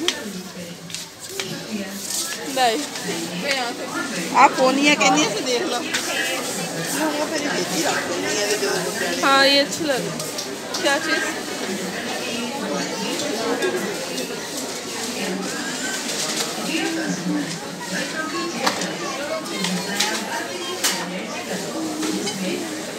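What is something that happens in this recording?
Several people chatter and murmur nearby.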